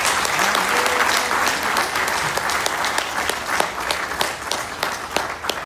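An elderly man claps his hands close by, amid thick applause.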